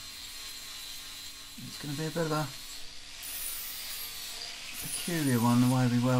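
An angle grinder whines as it grinds metal.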